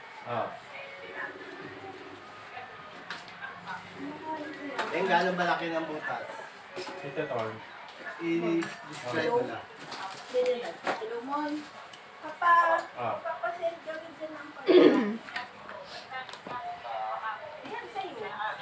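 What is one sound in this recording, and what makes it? Young women talk casually close by.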